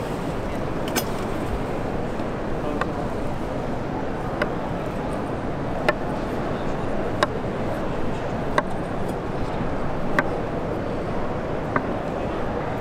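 A knife taps sharply on a wooden board.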